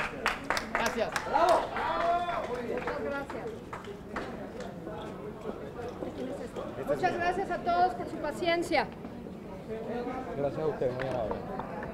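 Several men and women talk over one another in a crowd, close by.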